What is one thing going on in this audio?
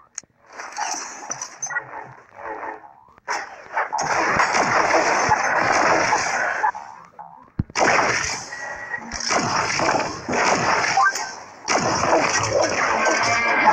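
Video game gunfire blasts rapidly in bursts.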